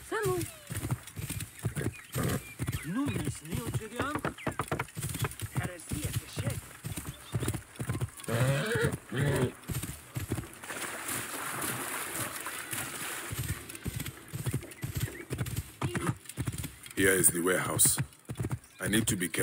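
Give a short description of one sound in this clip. A horse's hooves clop steadily on a dirt road.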